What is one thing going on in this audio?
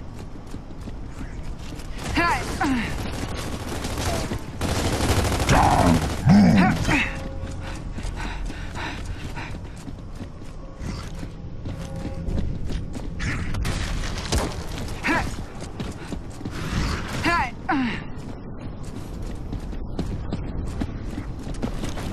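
Footsteps thud quickly on stone.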